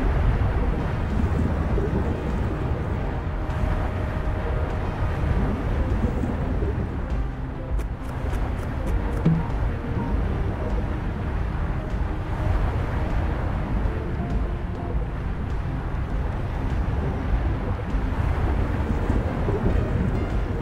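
A deep, muffled underwater rumble drones steadily.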